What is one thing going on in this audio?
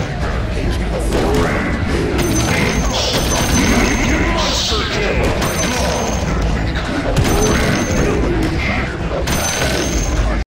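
Game battle sounds clash and hit rapidly.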